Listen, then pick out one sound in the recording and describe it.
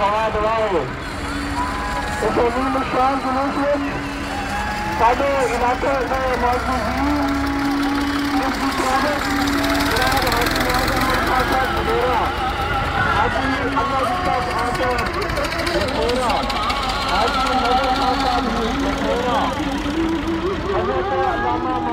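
Tractor engines chug steadily nearby.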